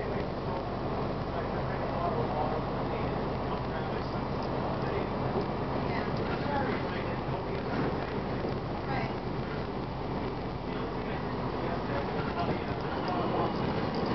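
Loose panels and fittings rattle inside a moving bus.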